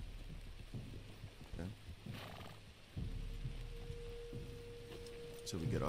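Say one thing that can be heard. Horses' hooves thud on soft ground.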